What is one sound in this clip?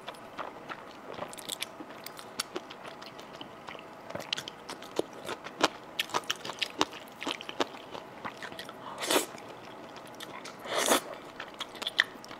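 A woman slurps noodles loudly, close to a microphone.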